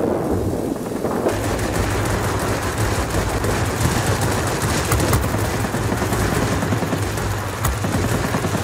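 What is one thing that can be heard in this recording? Explosions boom on the ground.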